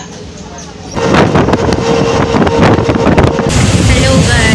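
A train rattles and rumbles along the tracks.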